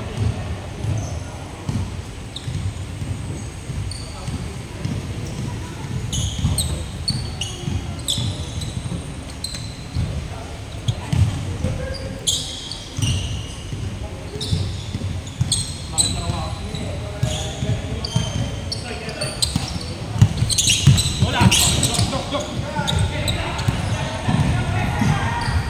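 A basketball bounces with dull thuds on the floor.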